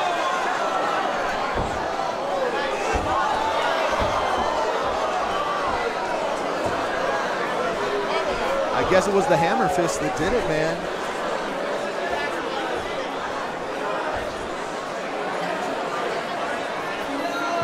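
A crowd of spectators chatters and murmurs in a large echoing hall.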